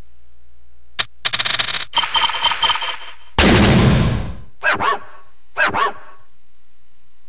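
Electronic chimes and beeps ring out in short bursts.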